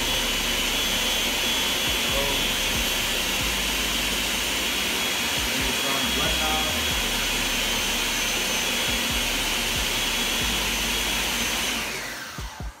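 A blender whirs loudly and steadily, then winds down.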